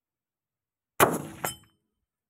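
A rifle fires a single loud shot that echoes briefly outdoors.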